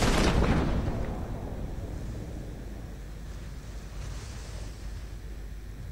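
Wind blows softly under an open parachute.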